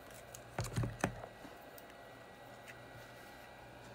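Small tools clack and knock on a hard surface.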